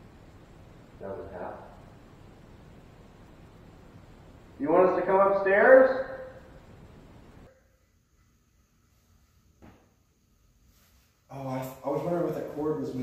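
A man speaks quietly nearby in an echoing room.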